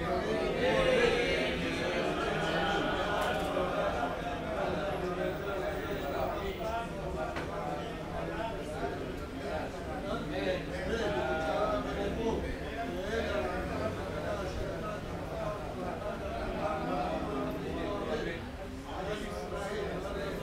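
Many men's voices murmur and chant together in an echoing hall.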